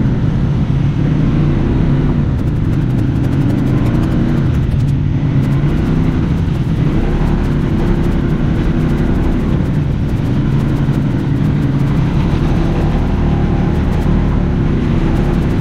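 Tyres crunch and rattle over a bumpy dirt trail.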